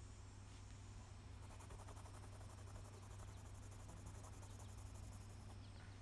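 A brush dabs and scrapes softly on a canvas.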